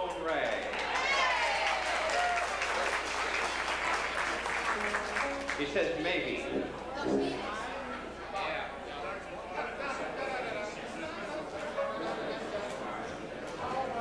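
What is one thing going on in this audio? Brass horns and a clarinet play loudly together.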